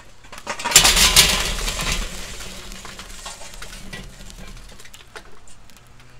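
Burning charcoal crackles and hisses.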